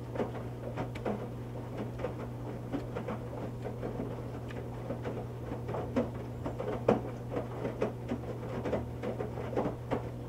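Water and wet laundry slosh and splash inside a washing machine.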